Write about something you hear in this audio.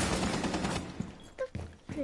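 A rifle fires in quick, loud bursts.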